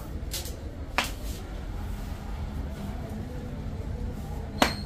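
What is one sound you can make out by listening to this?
A joint cracks sharply.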